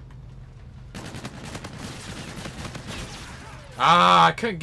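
Gunfire crackles in a short burst.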